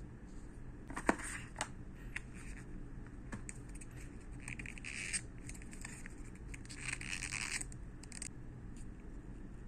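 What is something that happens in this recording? Plastic packaging rustles and crinkles as hands handle it.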